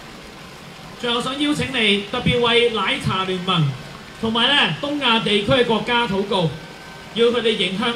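A man speaks calmly into a microphone, heard through loudspeakers outdoors.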